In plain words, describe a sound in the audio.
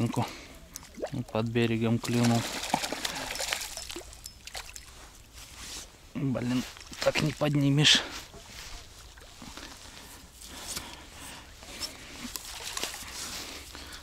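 A fishing reel whirs as its line is wound in.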